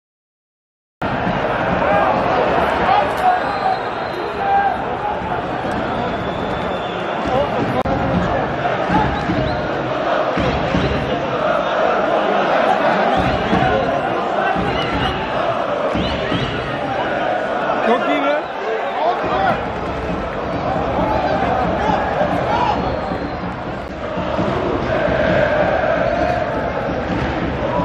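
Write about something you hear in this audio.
A crowd of spectators chatters and calls out across an open stadium.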